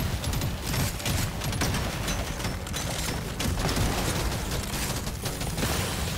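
Rapid gunfire rattles loudly in a game.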